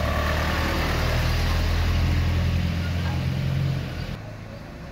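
A truck engine rumbles steadily up close.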